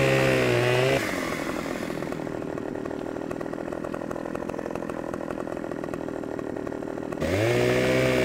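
A chainsaw engine idles with a rapid, rattling putter.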